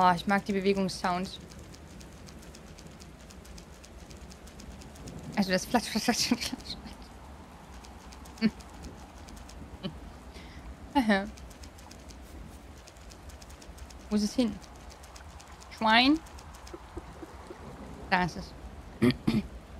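A young woman talks animatedly into a close microphone, in short bursts.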